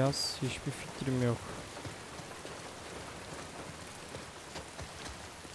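Footsteps run over wet ground.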